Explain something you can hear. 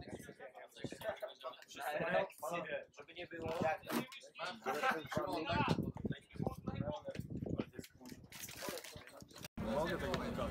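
Young men chat and laugh nearby.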